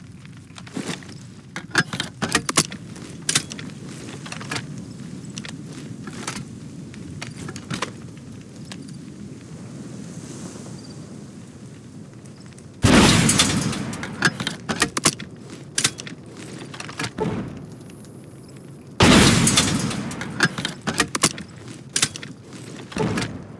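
Metal parts click and clatter as a launcher is reloaded.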